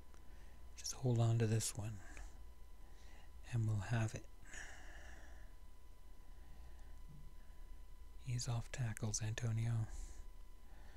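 An older man talks calmly into a close microphone, in short bursts with pauses.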